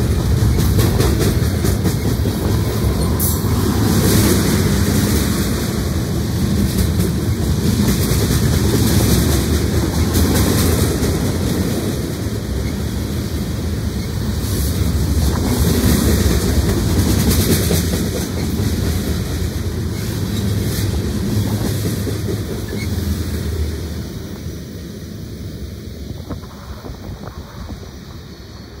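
A freight train rumbles past close by, its wheels clattering on the rails, then fades into the distance.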